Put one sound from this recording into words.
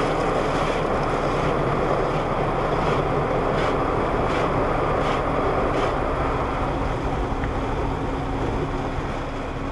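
Car wash brushes slap and scrub across the glass.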